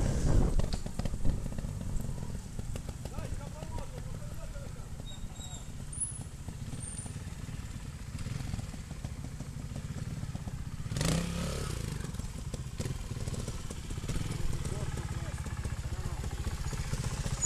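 A trials motorcycle engine idles and revs nearby.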